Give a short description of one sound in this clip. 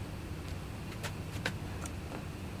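Small metal parts click as they are handled.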